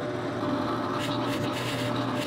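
A drill press whirs as it bores into wood.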